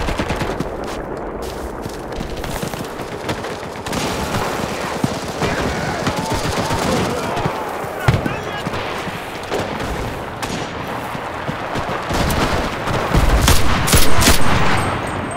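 Gunshots and explosions boom in the distance.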